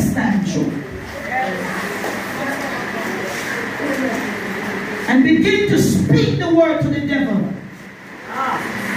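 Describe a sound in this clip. A woman speaks with animation into a microphone, heard through a loudspeaker in an echoing room.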